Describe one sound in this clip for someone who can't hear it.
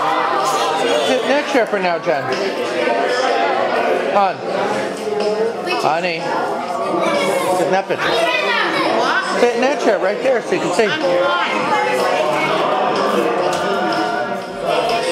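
Several young girls talk and exclaim with animation.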